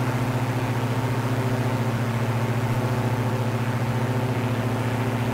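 Twin propeller engines drone steadily with a low, even hum.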